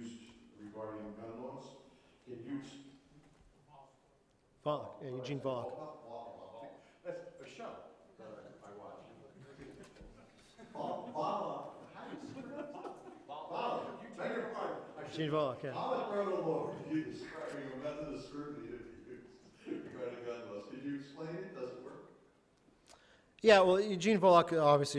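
A man speaks into a microphone in a calm, measured way, with short pauses.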